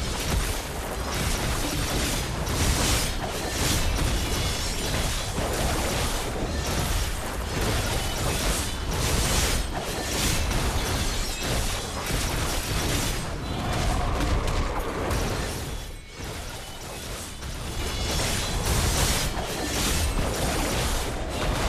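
Swords slash and magic blasts crash in a frantic fight.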